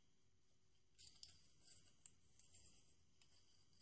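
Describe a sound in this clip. Cardboard packaging rustles in a woman's hands.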